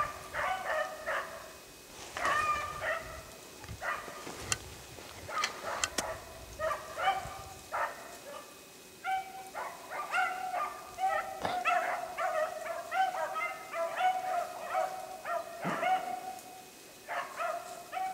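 A bird calls repeatedly in short, bright chirps.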